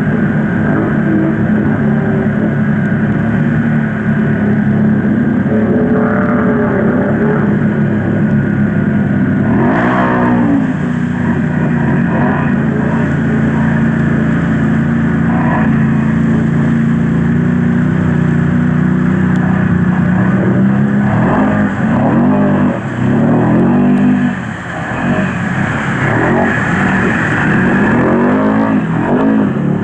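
Quad bike engines drone and rev loudly.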